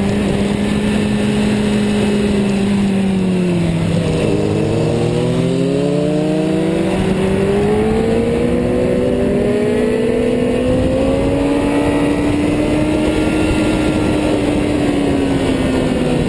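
A motorcycle engine roars close by, its pitch dropping and rising as it shifts and accelerates.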